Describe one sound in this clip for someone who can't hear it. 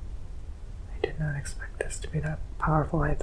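A young man speaks softly and drowsily close to a microphone.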